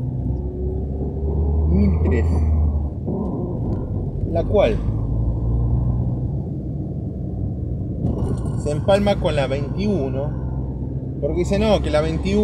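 Tyres roll over a paved road.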